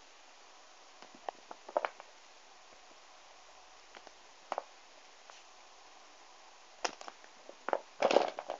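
Small plastic toys click and rustle as a hand handles them.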